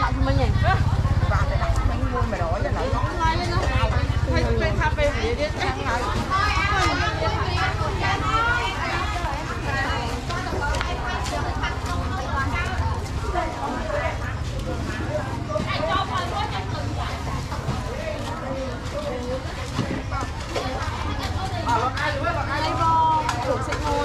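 Many people talk at once in a busy outdoor crowd.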